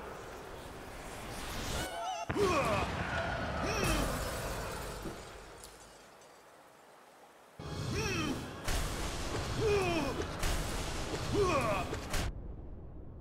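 Heavy blasts boom and rumble.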